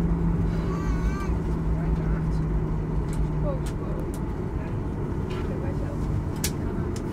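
Aircraft wheels rumble over the taxiway.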